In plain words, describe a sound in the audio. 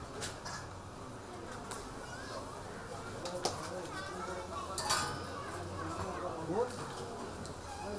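Oil sizzles and bubbles in a deep pan as bread fries.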